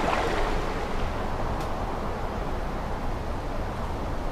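Water laps gently at a shore.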